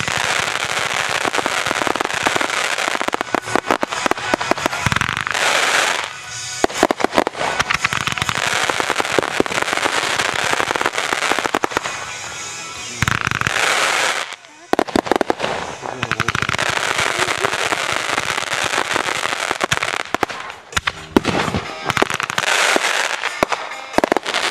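Fireworks burst with loud booming bangs.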